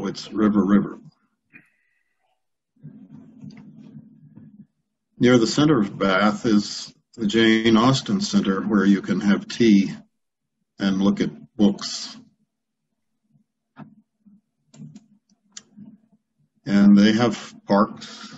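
An older man speaks calmly over an online call, with pauses.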